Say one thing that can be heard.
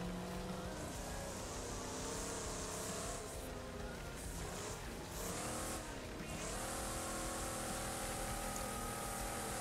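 Tyres skid and crunch over loose dirt.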